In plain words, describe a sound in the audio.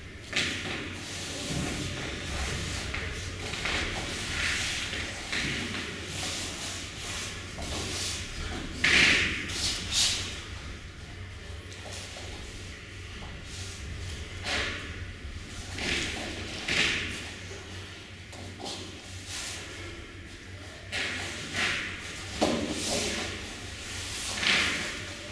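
Bodies shift and scuff softly on a foam mat.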